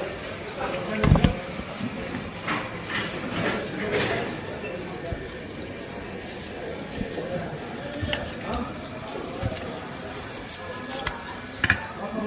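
A knife knocks on a wooden cutting board.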